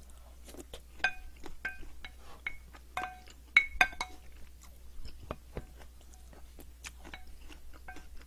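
A spoon scrapes and clinks against a ceramic bowl.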